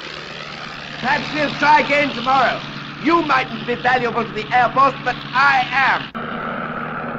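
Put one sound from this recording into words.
A man shouts over the engine noise.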